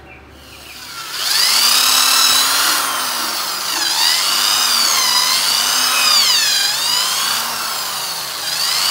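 A power drill whirs, its pitch rising and falling as it speeds up and slows down.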